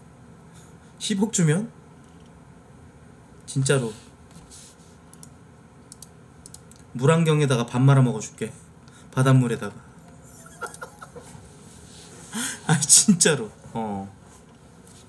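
A man speaks casually in short bursts close to a microphone.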